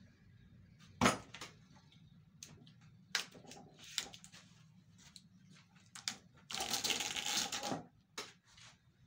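Metal parts clank and knock against each other.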